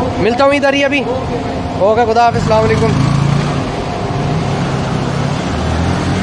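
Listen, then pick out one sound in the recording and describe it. A motorcycle rides off slowly.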